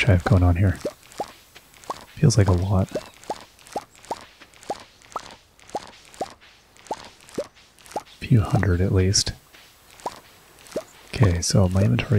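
Short rising pops sound in quick succession as crops are picked.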